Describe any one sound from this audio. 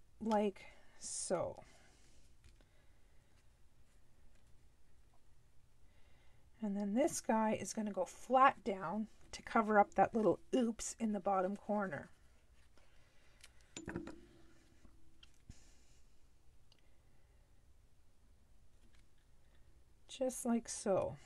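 Paper rustles softly as hands press it flat.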